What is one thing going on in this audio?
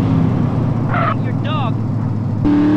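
Tyres screech as a car skids around a corner.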